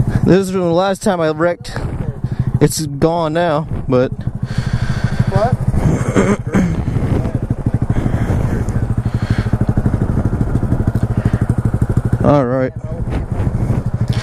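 A motorcycle engine idles with a steady, rapid putter.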